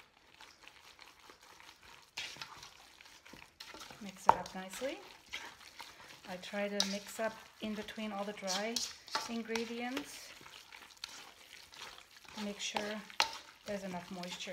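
A spoon stirs and scrapes through a thick mixture in a metal bowl.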